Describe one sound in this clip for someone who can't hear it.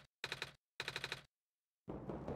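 Short electronic blips chirp in quick bursts.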